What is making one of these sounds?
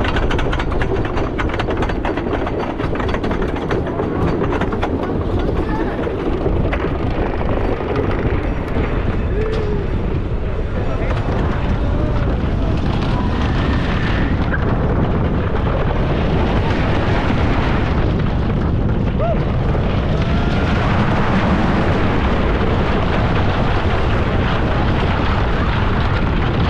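A roller coaster clacks and rattles loudly along wooden tracks.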